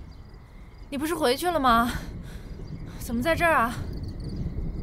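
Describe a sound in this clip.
A young woman speaks calmly and questioningly, close by.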